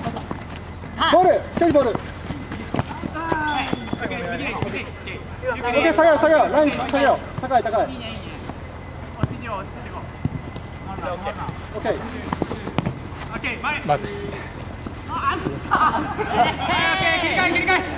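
Young men shout to each other across an open outdoor court.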